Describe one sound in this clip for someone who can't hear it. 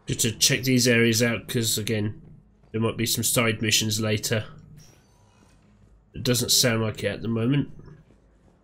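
A man talks with animation into a close microphone, with pauses.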